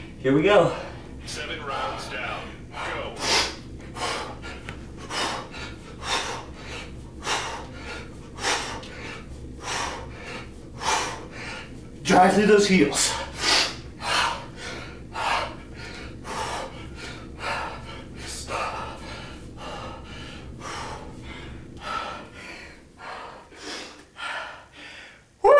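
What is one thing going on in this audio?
A man exhales sharply in a steady rhythm, breathing hard.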